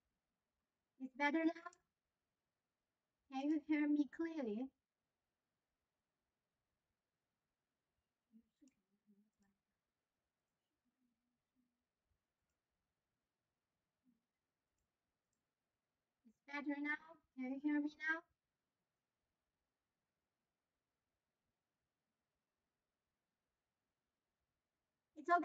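A young woman speaks calmly into a microphone in short phrases.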